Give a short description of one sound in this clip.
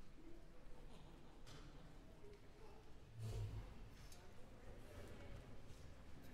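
An orchestra plays softly in a large, echoing concert hall.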